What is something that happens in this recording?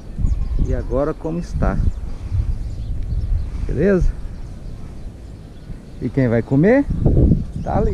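Wind buffets loudly outdoors.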